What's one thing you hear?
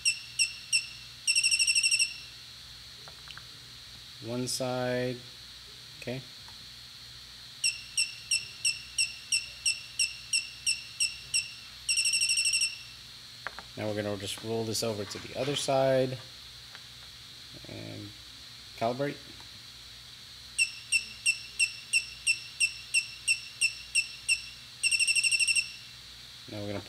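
A gimbal controller beeps in quick repeated bursts.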